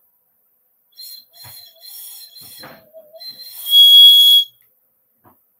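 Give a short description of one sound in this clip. A woman blows a small whistle, making shrill tones.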